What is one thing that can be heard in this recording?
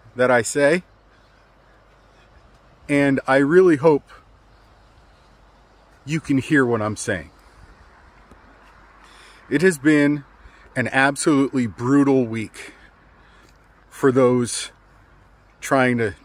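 A middle-aged man speaks calmly and closely, with pauses between phrases.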